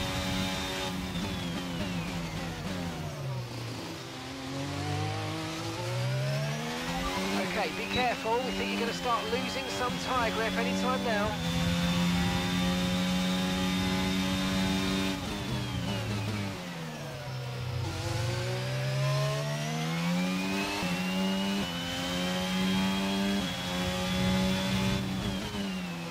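A racing car engine screams, dropping in pitch under braking and rising again through the gears.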